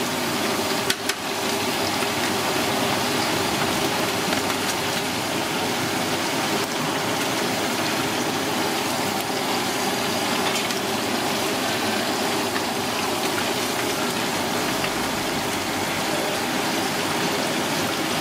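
Metal tongs clink against a pan.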